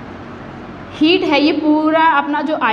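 A young woman speaks clearly and with animation, close by.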